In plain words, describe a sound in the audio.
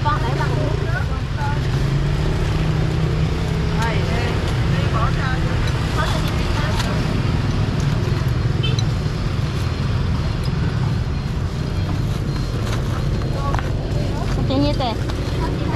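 Utensils clink against metal pots and bowls.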